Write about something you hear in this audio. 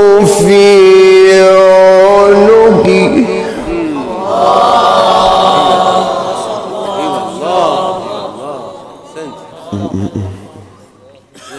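A young man chants melodically into a microphone, with long sustained notes.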